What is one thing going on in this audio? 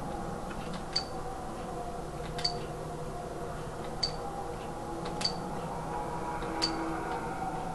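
Short electronic blips sound, one at a time.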